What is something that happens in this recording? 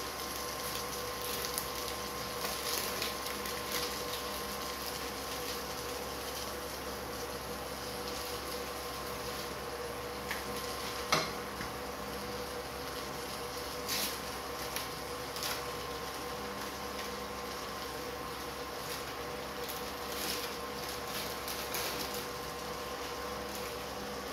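Food sizzles and crackles softly in a frying pan.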